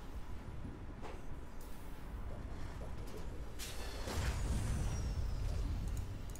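Electronic game sound effects whoosh and click.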